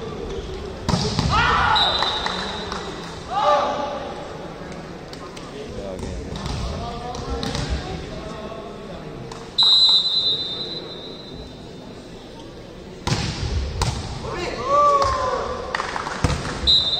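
Young men shout during the rally.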